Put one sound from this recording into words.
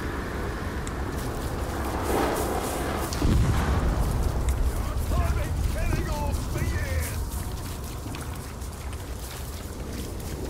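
Footsteps run over grass and stone.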